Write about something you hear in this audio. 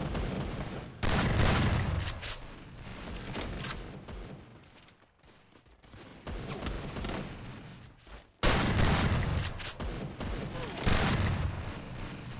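A shotgun fires loud booming shots in a video game.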